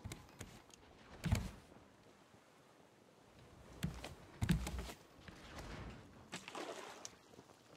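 Footsteps thump on wooden planks.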